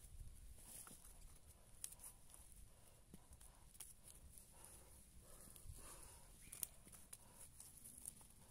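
A hand trowel scrapes and digs into loose soil.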